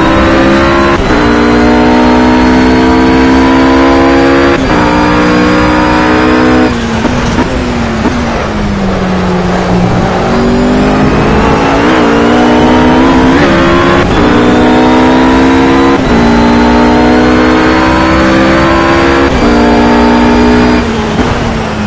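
A GT3 race car engine screams at full throttle, shifting up through the gears.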